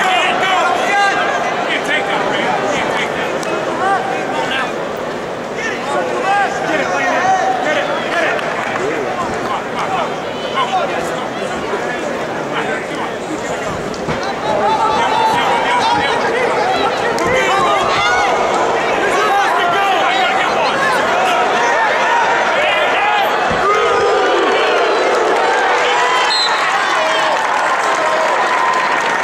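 A large crowd shouts and cheers in an echoing arena, growing louder partway through.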